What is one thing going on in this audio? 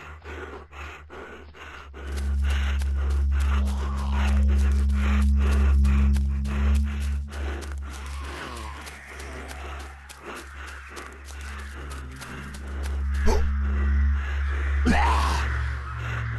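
Zombies groan and moan nearby.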